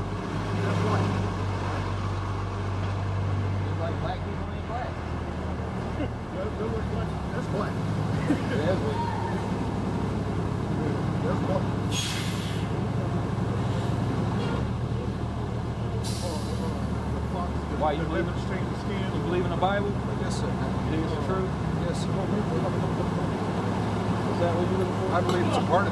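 A young man talks calmly nearby, outdoors.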